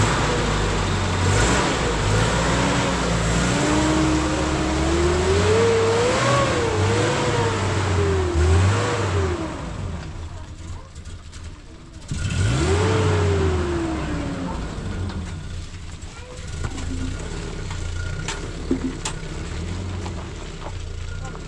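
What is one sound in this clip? A truck engine revs and rumbles as the truck pulls away and drives off into the distance.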